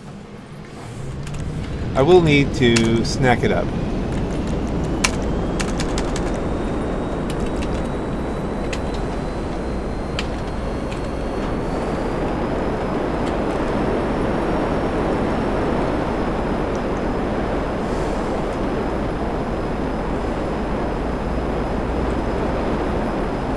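A jet engine roars steadily as an aircraft takes off and flies.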